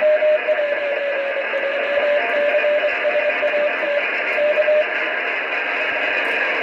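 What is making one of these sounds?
Static hisses steadily from a radio.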